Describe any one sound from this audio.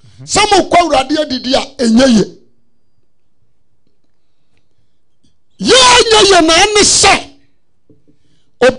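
A man preaches forcefully into a microphone, with pauses between phrases.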